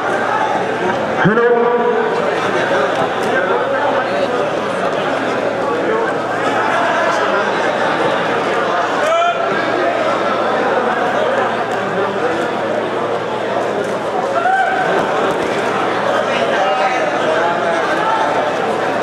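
A crowd of men chatters and shouts throughout, echoing in a large hall.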